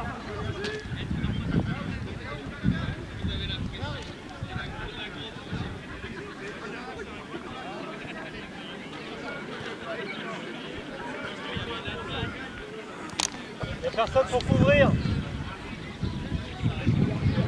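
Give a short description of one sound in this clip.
A football is kicked on a grass pitch.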